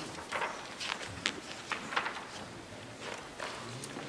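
Pages of a book turn and rustle.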